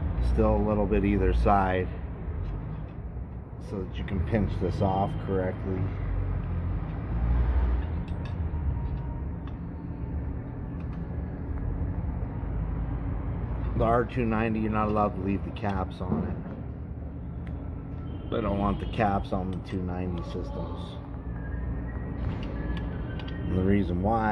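Small metal tools click and clink against metal fittings.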